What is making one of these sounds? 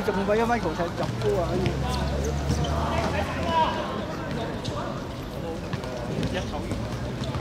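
Men call out to each other across an outdoor court.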